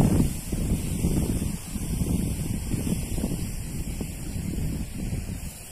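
Wind gusts outdoors, rumbling close by.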